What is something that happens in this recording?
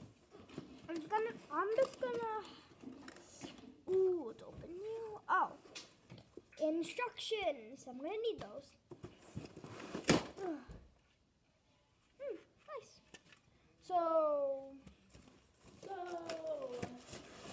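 A young boy talks excitedly close by.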